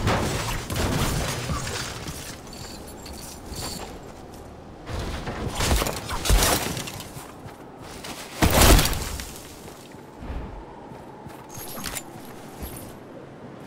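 Footsteps run over grass and snow.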